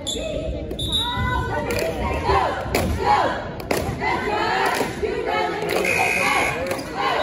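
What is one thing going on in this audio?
Basketball shoes squeak on a hardwood court in an echoing gym.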